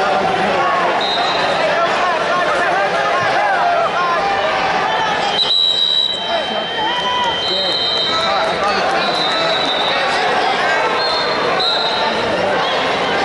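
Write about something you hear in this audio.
A referee's whistle blows in short shrill blasts.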